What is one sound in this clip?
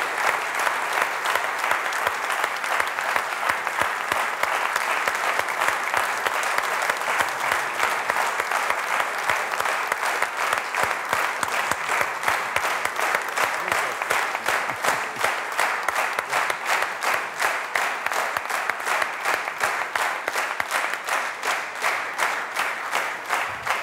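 An audience applauds loudly in a hall.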